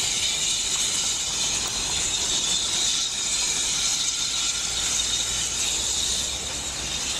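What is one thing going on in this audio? Steam hisses steadily from a locomotive.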